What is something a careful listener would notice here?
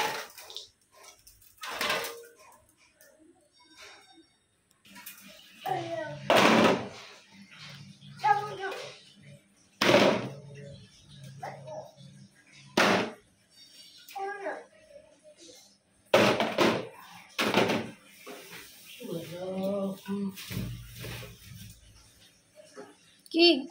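Empty metal cans clink and clatter against each other and a hard floor.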